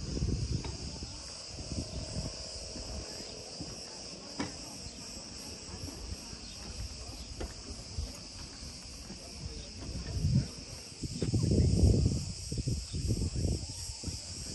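Wind blows outdoors and rumbles in gusts.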